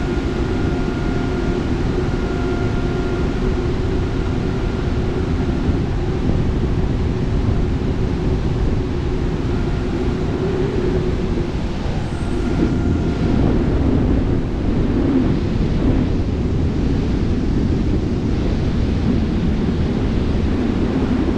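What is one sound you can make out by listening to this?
Wind rushes and buffets loudly past a gliding aircraft.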